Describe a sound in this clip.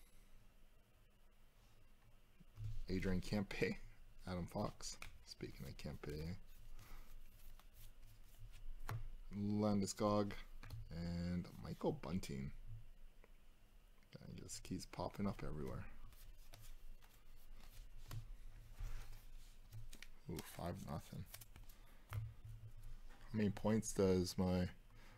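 Stiff cards slide and flick against each other in a pair of hands.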